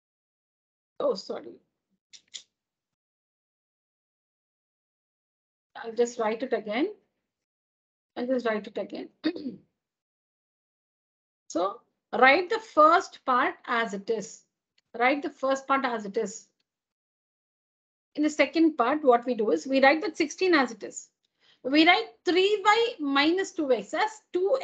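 A woman speaks calmly over an online call, explaining step by step.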